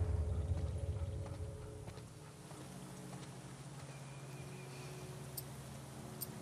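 Tall grass rustles as someone creeps through it.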